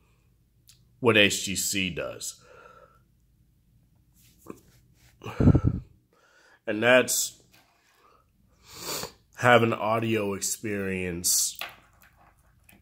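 A young man talks calmly and close up, in short bursts with pauses.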